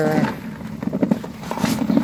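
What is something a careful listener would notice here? Small berries rattle and click in a plastic bucket.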